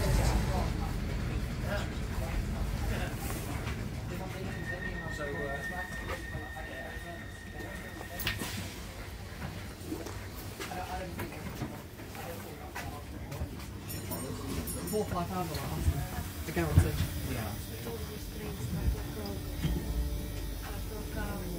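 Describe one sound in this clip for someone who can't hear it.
Several men and women chatter nearby.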